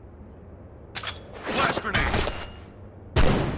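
A knife swishes through the air.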